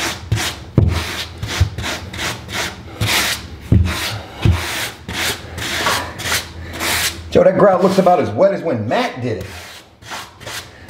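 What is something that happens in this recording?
A notched trowel scrapes back and forth across tile adhesive in quick, rasping strokes.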